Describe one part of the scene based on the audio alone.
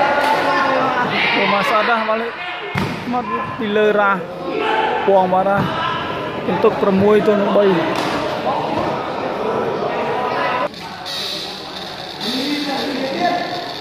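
A crowd of spectators talks and calls out in a large echoing hall.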